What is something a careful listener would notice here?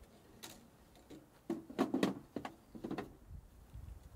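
Wooden sticks knock and clatter as they are loaded into a small metal stove.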